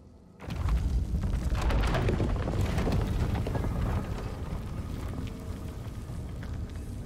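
A heavy stone door grinds and rumbles open.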